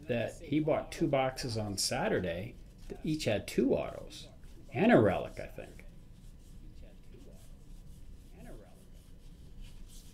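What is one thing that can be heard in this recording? Trading cards rustle softly as hands flip through them.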